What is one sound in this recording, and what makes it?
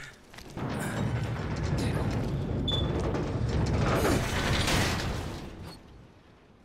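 A metal shutter rattles loudly as it rolls.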